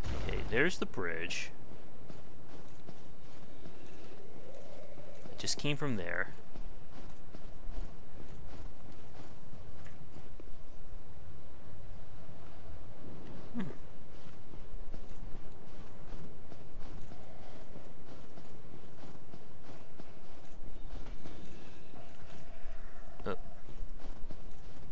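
Armoured footsteps crunch steadily through snow.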